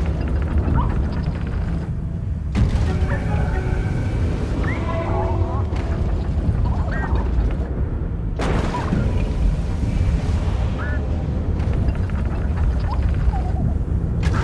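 Strong wind roars and swirls steadily.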